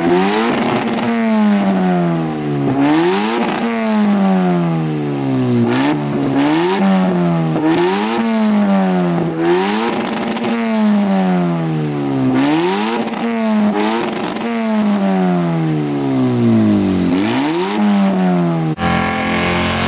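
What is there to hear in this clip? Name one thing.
A car engine revs hard again and again, its pitch rising and falling.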